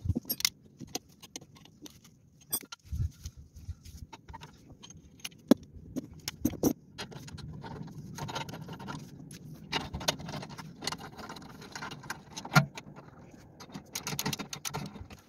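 A metal wrench clicks and clinks against metal.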